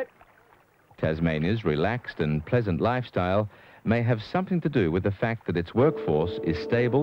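A man speaks up close, clearly heard.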